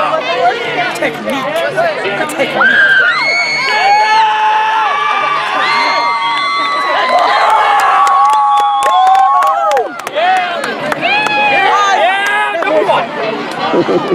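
A crowd of teenagers shouts and cheers outdoors.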